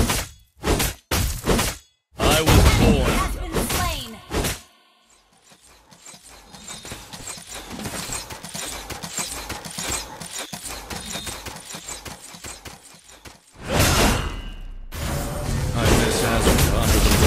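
Spell effects whoosh and crackle in a fast game battle.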